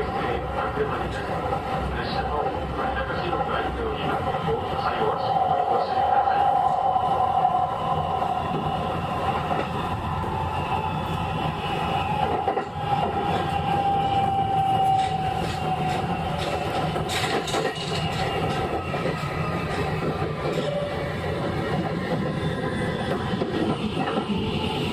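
Train wheels squeal shrilly on a curve.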